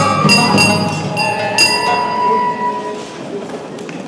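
An elderly performer chants loudly in a large echoing hall.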